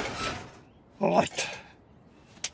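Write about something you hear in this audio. A man mutters briefly.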